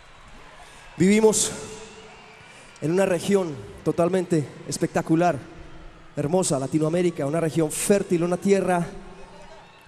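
A woman sings into a microphone over loudspeakers.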